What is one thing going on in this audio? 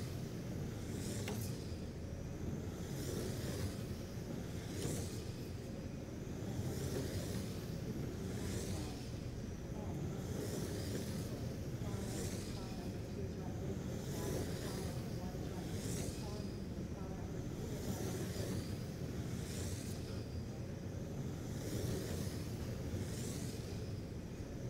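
Small electric race cars whine as they speed past, again and again, in a large echoing hall.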